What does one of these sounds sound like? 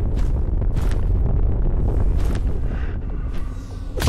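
Fire roars from a flamethrower jet.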